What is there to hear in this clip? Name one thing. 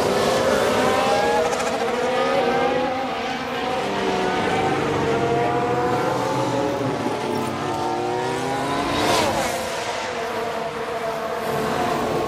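Racing car engines whine at high revs, rising and falling as they shift gears.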